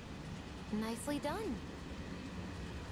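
A young woman speaks warmly.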